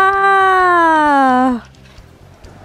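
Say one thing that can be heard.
A young person shouts with excitement in the distance.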